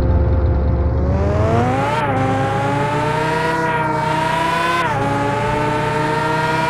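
A sports car engine revs up and shifts gears.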